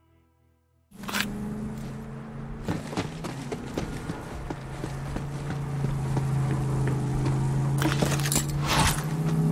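Footsteps crunch on dry dirt.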